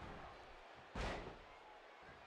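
A heavy body slams onto a wrestling mat with a loud thud.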